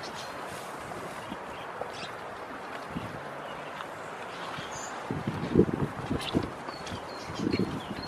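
Goat hooves clatter on wooden logs.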